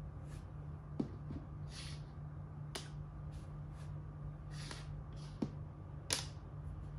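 A game piece clicks down on a wooden board.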